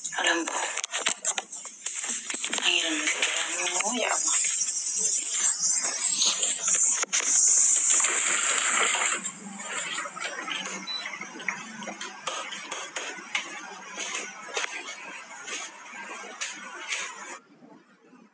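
A young woman talks casually, close to a phone microphone.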